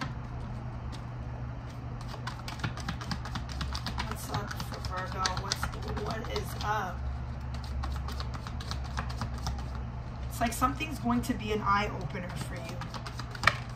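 Playing cards riffle and slap together as they are shuffled by hand.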